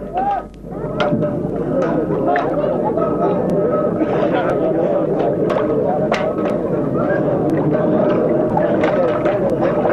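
A large crowd murmurs and shouts outdoors.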